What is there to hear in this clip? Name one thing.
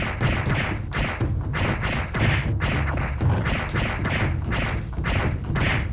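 Punches and blows land in quick, repeated thuds.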